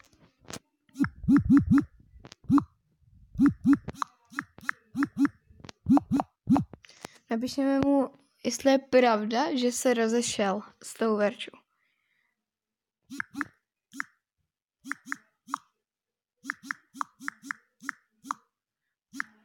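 Phone keyboard taps click in quick runs.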